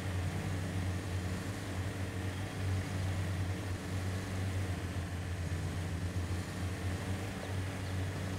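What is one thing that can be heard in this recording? Tyres crunch over rocky ground.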